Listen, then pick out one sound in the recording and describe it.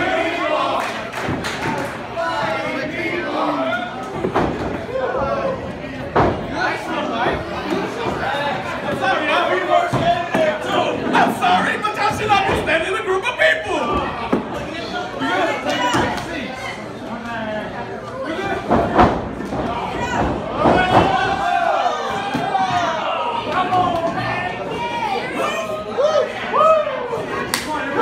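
A crowd of men and women shouts and cheers loudly in a large echoing hall.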